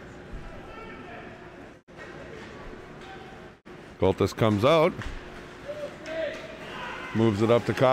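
Skates scrape across ice in a large echoing arena.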